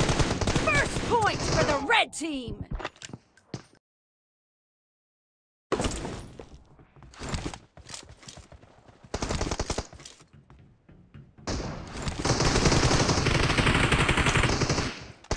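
Rifle fire rattles in rapid bursts.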